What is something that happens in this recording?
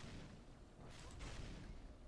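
A gun fires loud shots.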